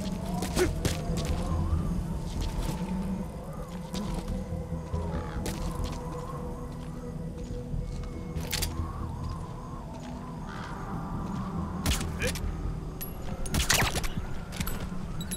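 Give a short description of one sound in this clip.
Footsteps scuff and shuffle over rough ground.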